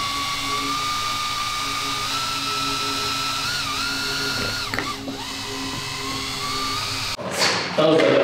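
A power drill whirs steadily as it mixes thick liquid in a bucket.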